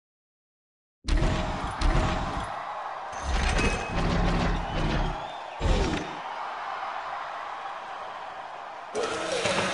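A heavy metal robot clanks and thuds as it moves.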